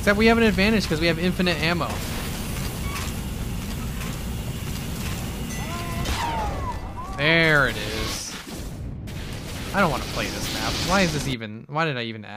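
A flamethrower roars in bursts.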